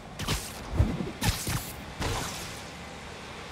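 A web line whooshes and snaps.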